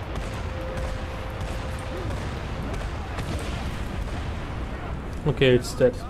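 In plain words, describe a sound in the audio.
Machine guns fire in rapid bursts.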